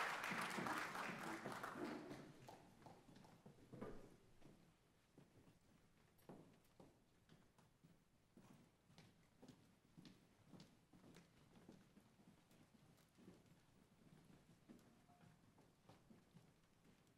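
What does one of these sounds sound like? Many footsteps clatter and thud on a wooden stage in a large echoing hall.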